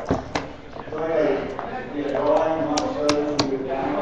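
Game checkers click as they are moved on a wooden board.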